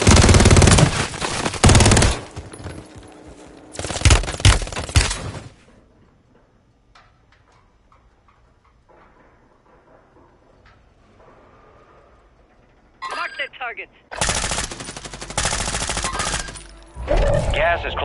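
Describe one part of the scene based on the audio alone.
A rifle fires rapid, loud bursts of gunshots.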